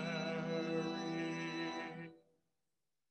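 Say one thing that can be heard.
A man sings a sustained line into a microphone.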